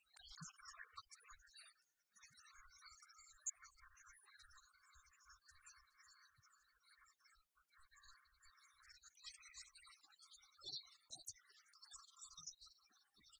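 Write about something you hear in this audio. Chiptune game music plays steadily.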